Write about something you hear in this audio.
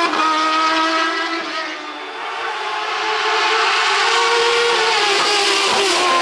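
A racing car engine screams at high revs as the car approaches and roars past.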